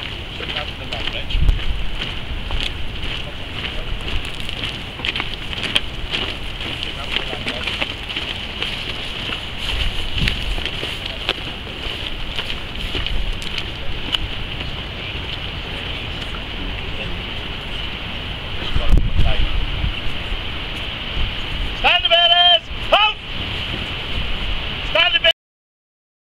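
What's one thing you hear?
Flags flap in the wind.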